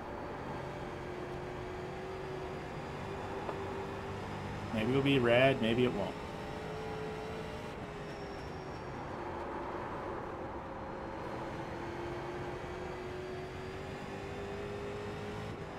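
A race car engine drones steadily, its pitch rising and falling slightly.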